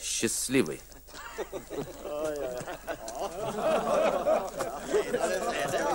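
A crowd of men and women murmurs and chatters.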